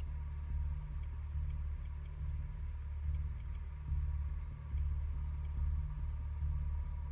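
Short electronic menu ticks sound as a cursor moves across a map.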